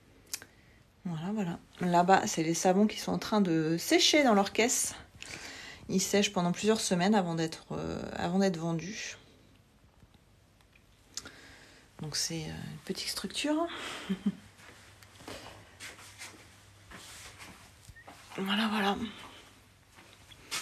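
A woman speaks with animation close to a phone microphone.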